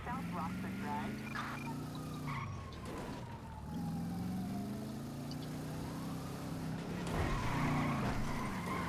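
A car engine revs and roars steadily, rising and falling in pitch.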